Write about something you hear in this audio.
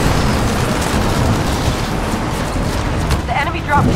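Explosions boom nearby.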